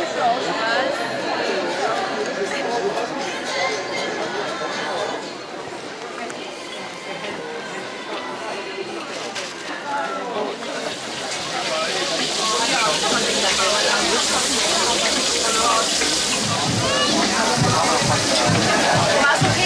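A crowd of men and women chatter around.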